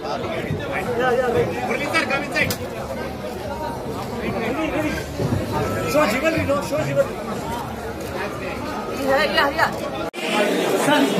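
A crowd chatters and calls out loudly close by.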